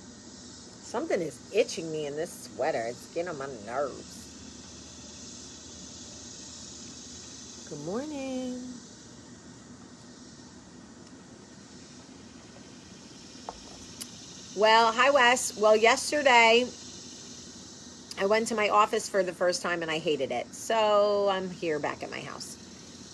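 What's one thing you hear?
A woman talks casually, close by.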